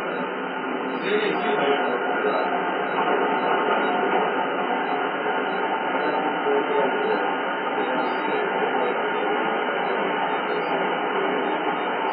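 A train rumbles louder as it crosses a steel bridge.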